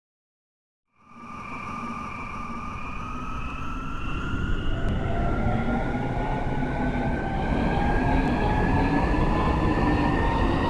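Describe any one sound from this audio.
An electric train's motor whines, rising steadily in pitch as the train speeds up.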